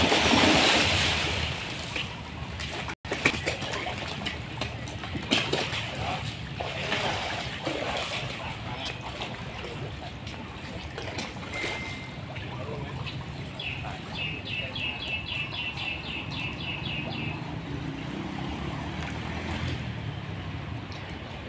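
Water ripples and laps gently.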